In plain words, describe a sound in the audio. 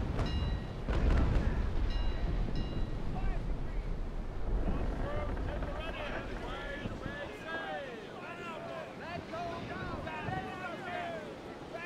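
Waves wash and splash against wooden ships on the open sea.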